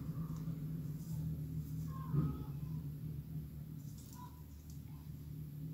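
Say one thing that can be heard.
Metal parts clink and click close by.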